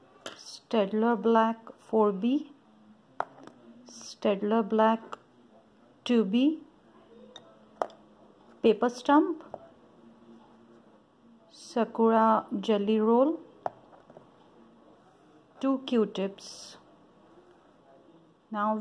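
Pencils clack lightly as they are picked up and set down on a hard surface.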